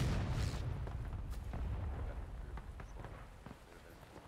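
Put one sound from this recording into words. Footsteps splash through shallow water.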